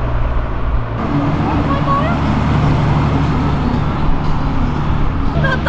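A motorcycle engine rumbles as a motorcycle rides past.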